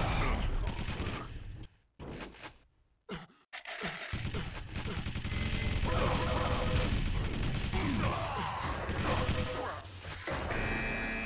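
Weapons fire and explosions boom in a video game.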